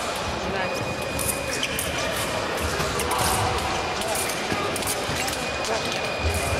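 Fencers' shoes squeak and thud on the floor.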